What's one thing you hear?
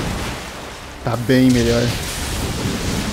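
Lightning cracks with a loud burst.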